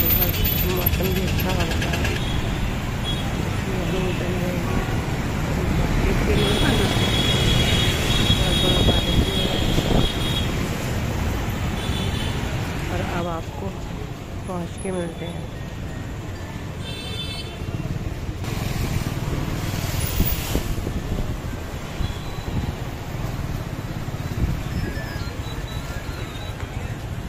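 Street traffic rumbles steadily outdoors.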